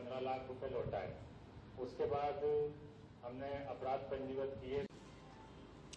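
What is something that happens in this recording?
A man speaks into a microphone in a calm, formal voice.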